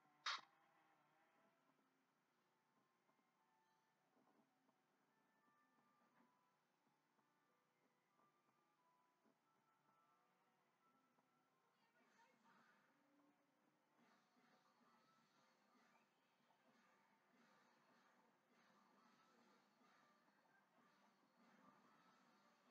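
Soft tinkling music plays faintly from a television speaker.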